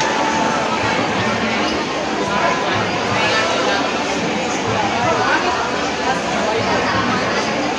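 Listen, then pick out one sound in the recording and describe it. A crowd chatters in a large echoing hall.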